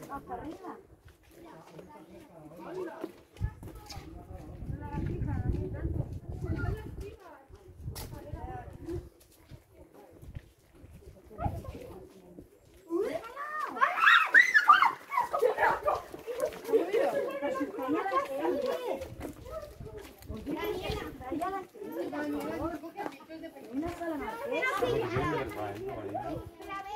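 Footsteps scuff on a stone path.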